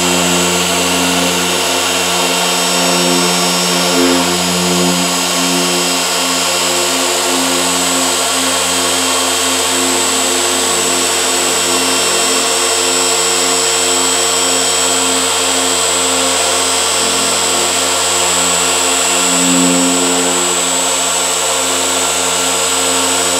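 An electric polisher whirs steadily, its pitch wavering as it presses against the surface.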